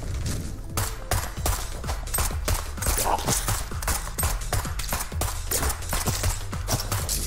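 Rapid video game gunshots fire in quick bursts.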